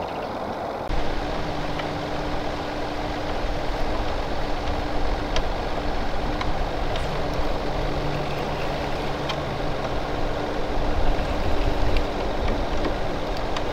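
A boat motor hums steadily over the water.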